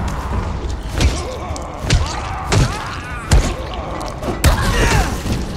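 Heavy blows thud and smack against a body.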